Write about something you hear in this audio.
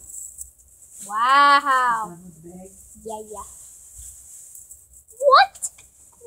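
A metal spring toy jingles as it is shaken.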